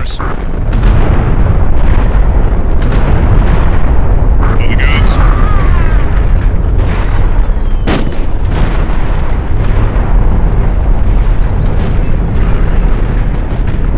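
Explosions boom one after another.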